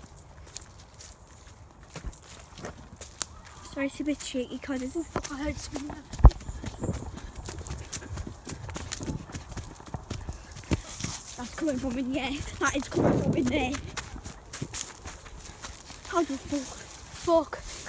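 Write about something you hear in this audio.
Footsteps run over grass and dry leaves.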